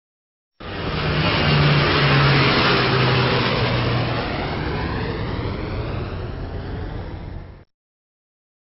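A jet airliner roars past overhead and fades away.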